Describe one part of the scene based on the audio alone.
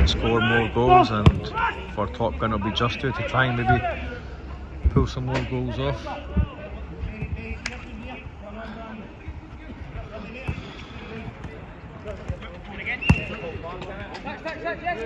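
Young men shout and call out outdoors.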